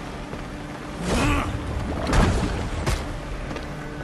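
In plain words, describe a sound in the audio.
A fiery explosion bursts with a loud roar.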